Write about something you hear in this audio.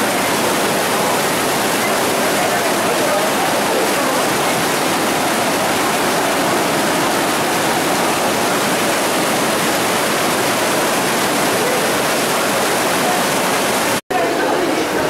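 Heavy rain pours down steadily, drumming on umbrellas and the ground.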